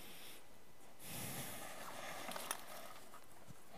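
Paper rustles as a flip chart sheet is turned.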